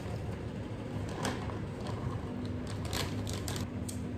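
A plastic bag crinkles as a hand reaches into it.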